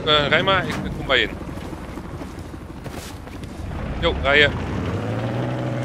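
Tank engines rumble low and steady.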